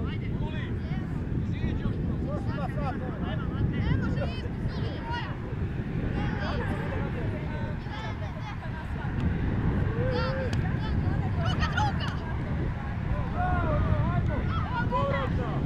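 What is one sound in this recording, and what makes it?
Wind rumbles steadily across an open field.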